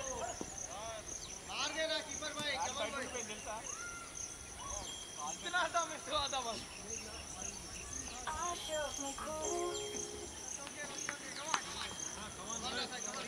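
A cricket bat knocks a ball with a sharp crack.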